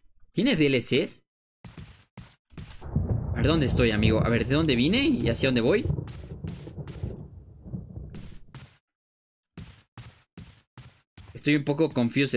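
Footsteps thud slowly along a wooden floor.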